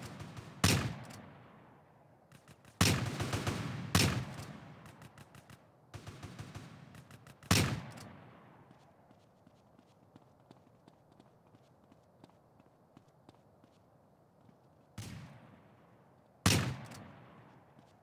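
Gunshots crack loudly and echo.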